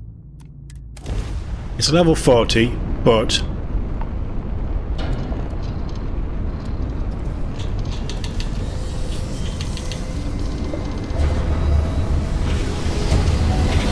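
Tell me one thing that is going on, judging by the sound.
A spaceship's engines roar steadily.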